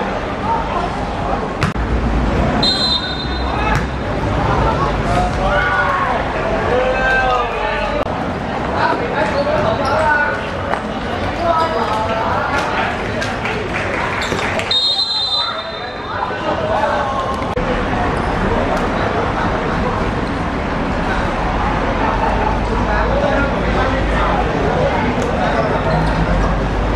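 Young boys shout and call out to each other across an open outdoor pitch.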